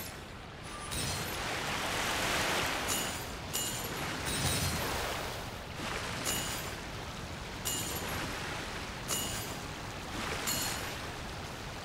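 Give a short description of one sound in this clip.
A boat rushes across water with splashing waves.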